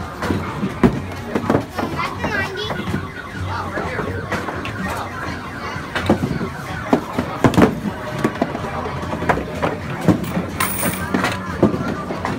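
Wooden balls thump and rumble down arcade lanes.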